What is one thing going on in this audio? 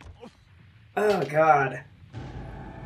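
A young man laughs close to a microphone.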